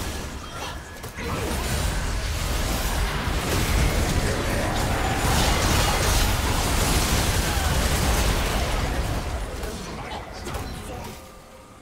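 Magic blasts and clashing weapons crash and whoosh in a loud, busy fight.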